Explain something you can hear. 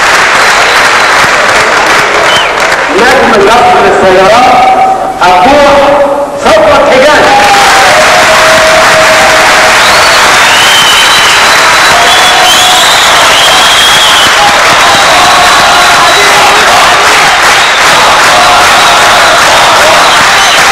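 A large audience applauds and cheers loudly.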